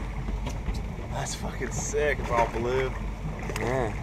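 A fish splashes in the water beside a boat.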